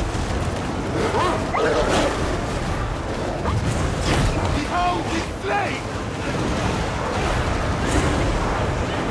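A weapon blasts with a steady, rushing roar.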